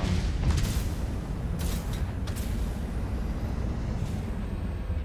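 A low underwater engine hum drones steadily.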